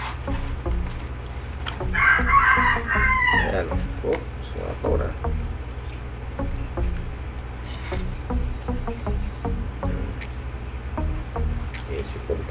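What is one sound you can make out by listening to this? A plastic tray rattles and clicks in a man's hands.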